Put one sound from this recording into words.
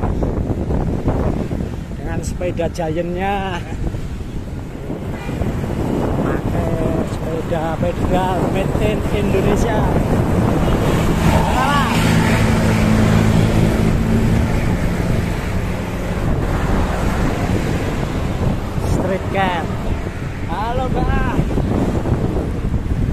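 Wind rushes loudly past while cycling outdoors.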